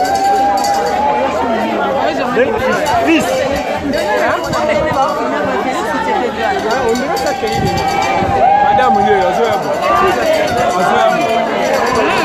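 A large crowd outdoors sings and chants loudly together.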